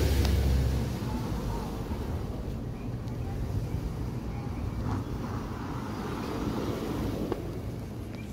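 A car drives slowly past in a street.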